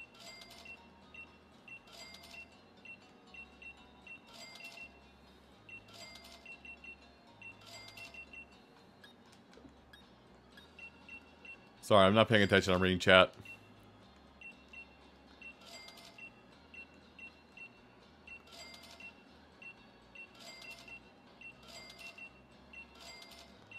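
Short electronic menu blips tick in quick succession.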